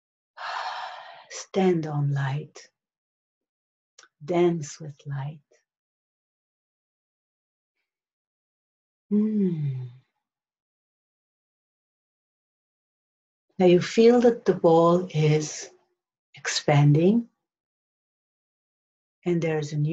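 A middle-aged woman speaks slowly and calmly close by, with long pauses.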